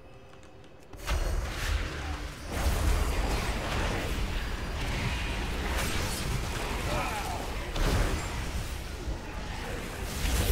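Magic spells crackle and blast in a loud fantasy battle.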